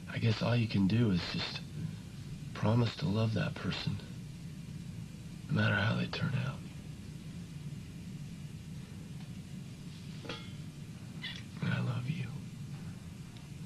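A young man speaks quietly and earnestly nearby.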